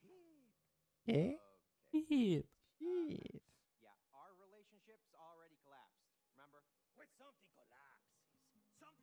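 A man speaks calmly, hesitating.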